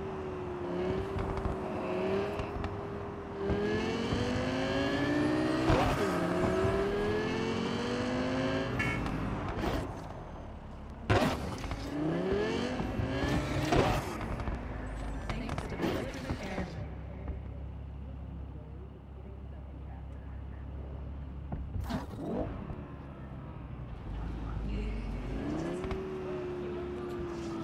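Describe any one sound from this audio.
A car engine revs up and down as a sports car speeds along.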